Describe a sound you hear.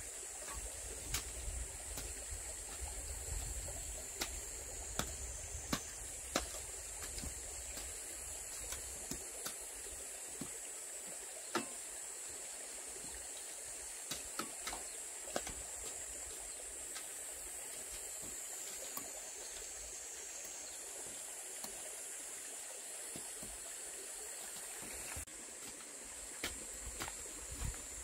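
A hoe strikes and scrapes dry soil.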